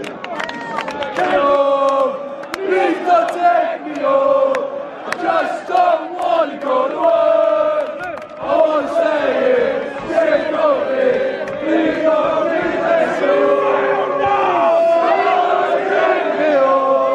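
A large crowd of young men chants and sings loudly, close by, outdoors.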